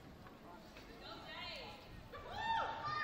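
Young children shout and squeal excitedly.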